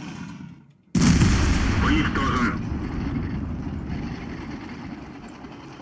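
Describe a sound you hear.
A tank cannon fires with a loud boom that echoes away.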